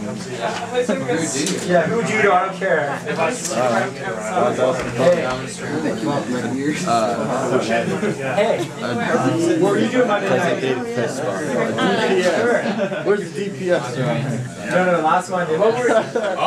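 A crowd of young people chatters loudly nearby.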